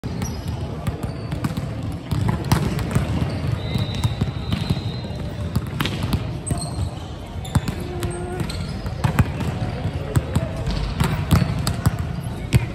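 Sneakers squeak sharply on a hard court floor.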